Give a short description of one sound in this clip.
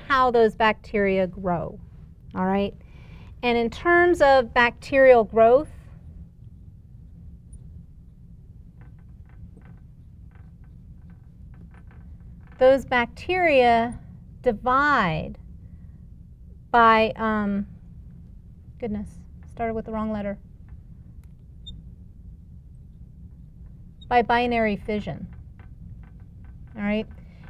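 A woman speaks calmly and clearly into a close microphone, pausing now and then.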